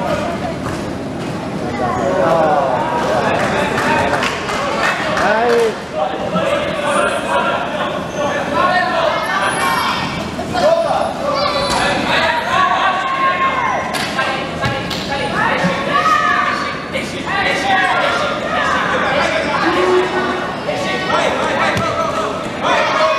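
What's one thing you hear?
A basketball bounces on the floor with dull thuds.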